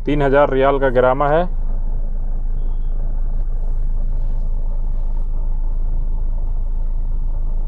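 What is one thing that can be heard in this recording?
A car engine idles with a low, steady hum, heard from inside the car.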